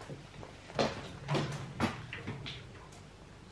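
Metal pots clink and knock together.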